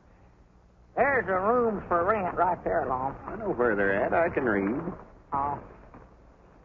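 A man speaks in a conversational voice, heard through an old recording.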